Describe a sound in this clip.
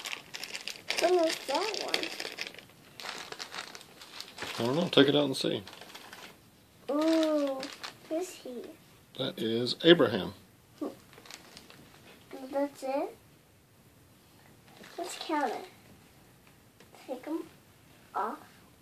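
A young girl talks in short bursts close by.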